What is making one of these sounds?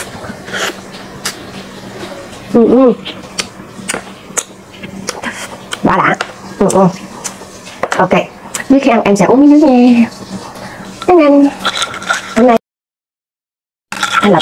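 A young woman chews and slurps food noisily.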